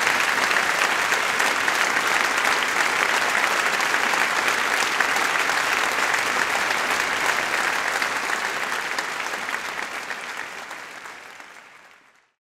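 A large audience applauds in a big hall, then the applause fades away.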